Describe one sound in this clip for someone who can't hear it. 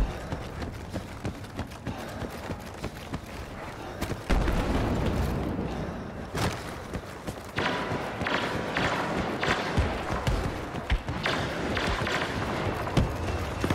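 Footsteps run quickly on a hard floor.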